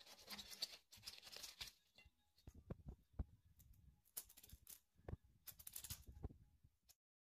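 Artichoke leaves drop with soft taps onto a plate.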